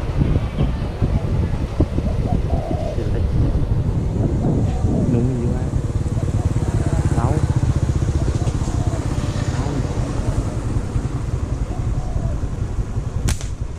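Wind rumbles steadily against a microphone outdoors.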